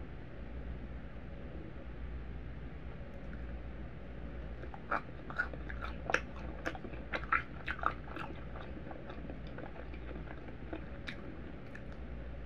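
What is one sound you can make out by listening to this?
Soft pancakes squish and tear between fingers.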